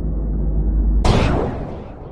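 An explosion bursts with a sudden loud boom.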